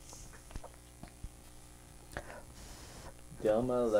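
A piece of card is handled and tapped softly on paper.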